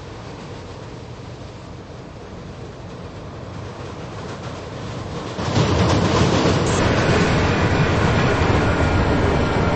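A subway train rumbles along the track and grows louder as it pulls into a station.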